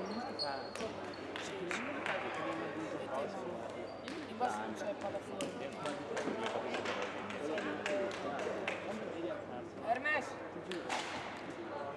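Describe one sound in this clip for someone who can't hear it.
Young players shout and chatter together in a large echoing hall.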